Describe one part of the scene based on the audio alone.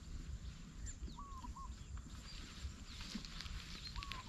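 Dry grass rustles underfoot.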